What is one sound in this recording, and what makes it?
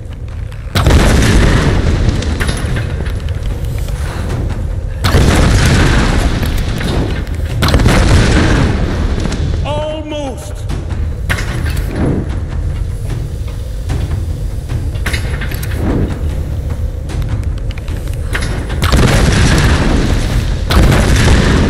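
Flames burst with loud whooshing roars.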